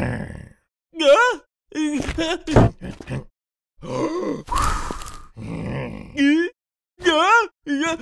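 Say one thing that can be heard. A cartoon pig shrieks in alarm.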